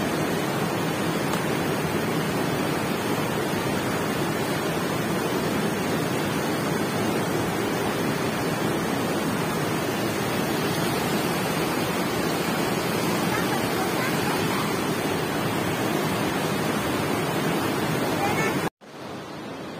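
A fast river rushes loudly over rocks close by.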